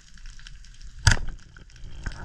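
A speargun fires with a sharp snap underwater.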